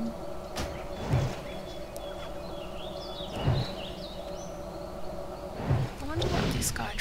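A fiery spell whooshes and bursts with a sharp impact.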